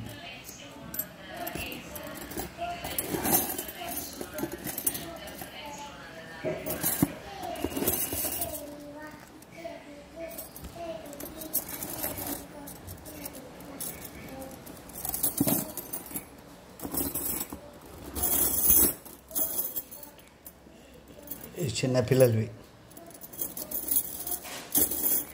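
Metal bangles clink and jingle as a hand sorts through them.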